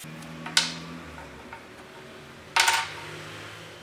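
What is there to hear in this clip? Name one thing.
Small wooden pegs tap and clatter on a wooden surface.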